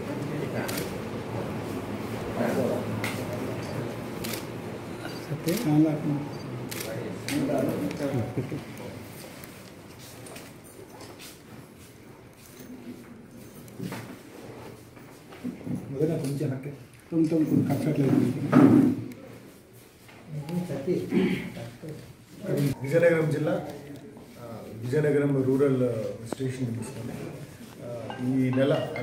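A man speaks calmly and steadily, close by.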